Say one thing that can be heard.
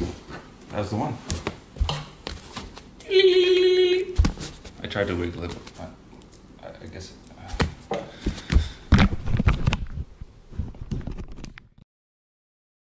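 Footsteps thud on wooden stairs.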